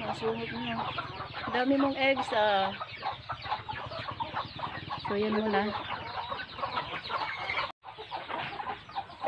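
Many chickens cluck and chatter close by.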